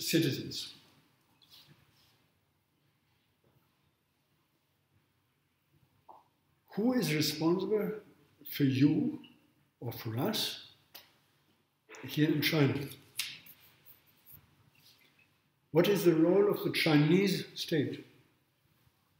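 An older man speaks calmly, close by, in short bursts with pauses.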